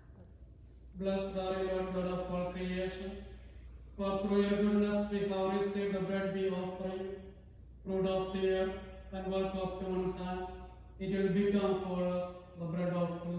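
A man chants in a steady, sung voice through a microphone.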